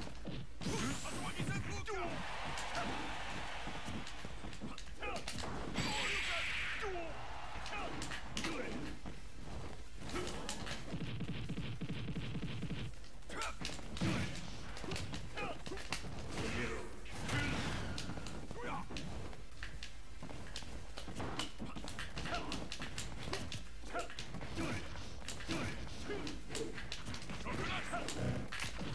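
Game punches and blasts thud and crackle in quick bursts.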